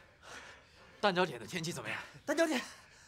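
A young man laughs and speaks cheerfully close by.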